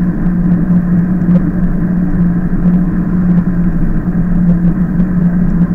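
Wind rushes past at riding speed.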